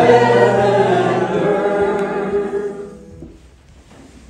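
Piano chords ring out and fade.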